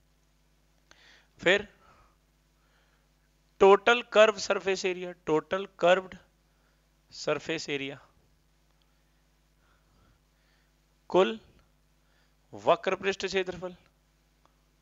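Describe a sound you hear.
A man explains calmly into a close microphone, in short bursts.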